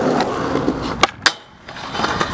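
A skateboard snaps and clacks as it pops into the air.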